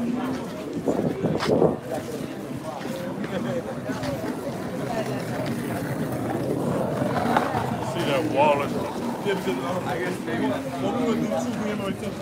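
A crowd chatters in the background.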